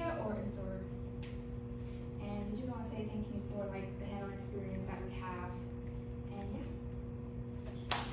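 A young woman speaks calmly to a room, slightly distant.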